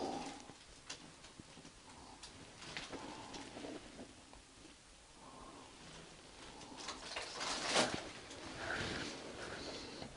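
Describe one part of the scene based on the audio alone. Footsteps crunch and shuffle over scattered debris.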